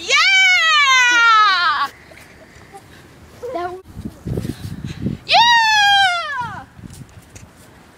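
A young boy shouts and laughs excitedly close by.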